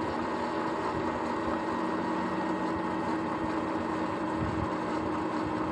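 An electric bike motor whines steadily.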